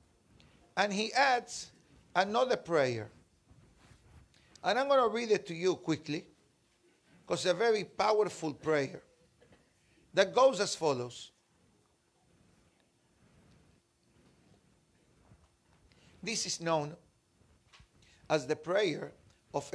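A middle-aged man speaks calmly and closely into a microphone, in short phrases with pauses.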